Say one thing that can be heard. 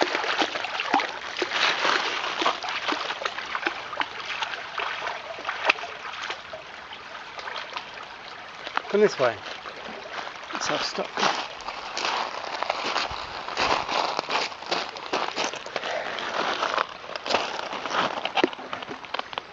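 A shallow stream trickles and babbles over stones.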